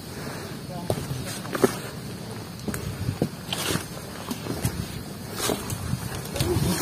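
Footsteps crunch and scuff on a leafy dirt trail.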